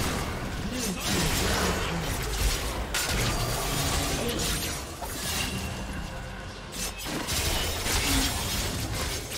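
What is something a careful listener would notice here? Spell blasts and weapon hits clash in a fast video game battle.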